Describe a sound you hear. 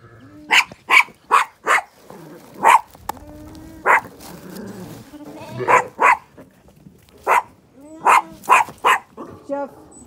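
A dog barks loudly and repeatedly close by.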